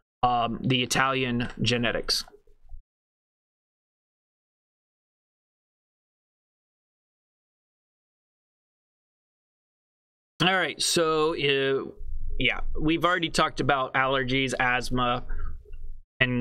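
A man speaks calmly and clearly into a close microphone, pausing for a while.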